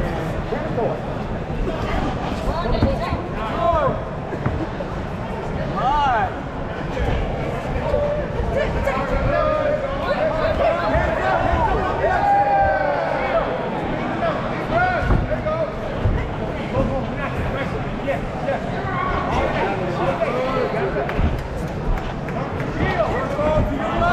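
Boxing gloves thud against a boxer's body.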